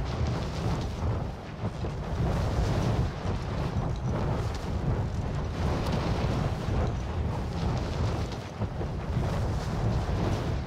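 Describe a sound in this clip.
Wind rushes steadily past a parachute as it glides down.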